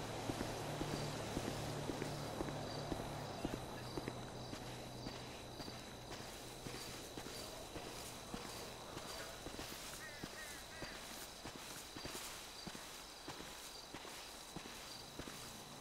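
Footsteps crunch on dry ground at a steady walking pace.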